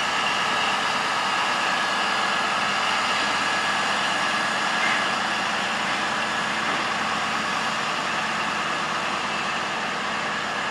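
A diesel locomotive engine hums and rumbles steadily.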